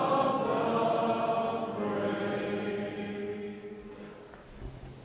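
A crowd sings together in a large echoing hall, the last note fading away.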